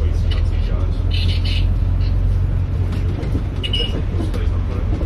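A vehicle's engine rumbles steadily while driving along a road.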